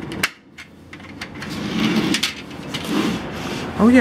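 A sliding door is unlatched and slid open.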